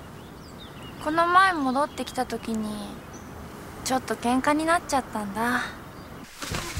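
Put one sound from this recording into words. A young woman speaks softly and calmly outdoors.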